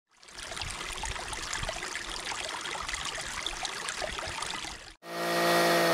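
A shallow stream trickles and splashes over rocks.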